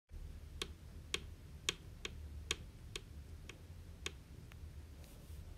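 High heels click on a hard floor.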